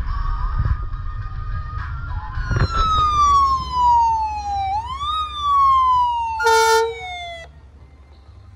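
An ambulance siren wails loudly, sweeping up and down.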